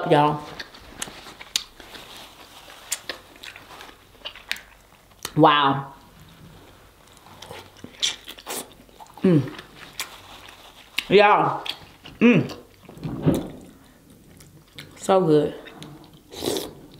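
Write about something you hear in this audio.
Food squelches and smacks wetly as it is chewed close to a microphone.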